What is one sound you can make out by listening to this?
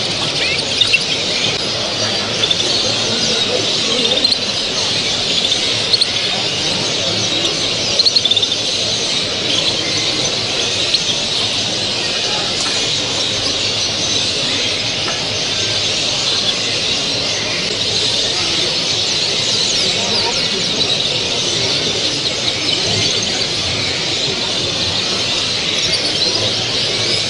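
Many small birds chirp and twitter throughout.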